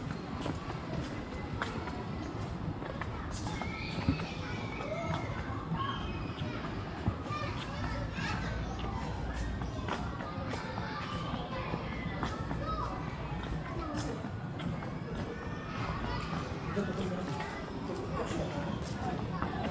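Footsteps tread on stone paving outdoors.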